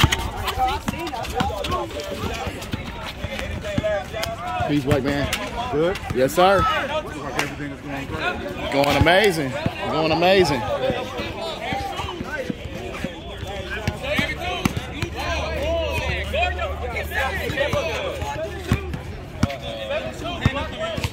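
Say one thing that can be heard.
A crowd of young people chatters and shouts outdoors.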